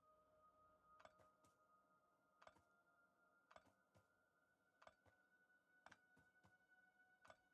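A pickaxe strikes rock in steady, repeated blows.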